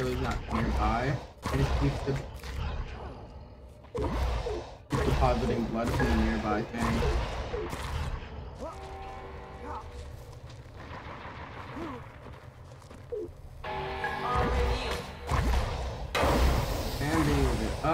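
Heavy blows thud against a creature.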